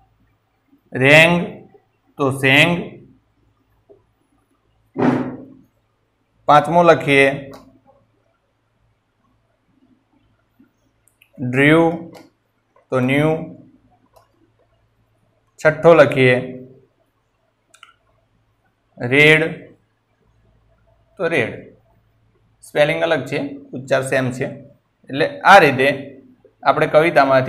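A man speaks calmly nearby in short phrases with long pauses.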